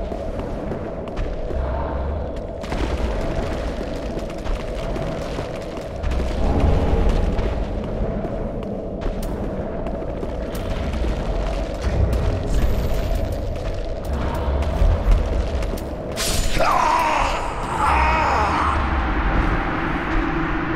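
Heavy armoured footsteps thud on stone.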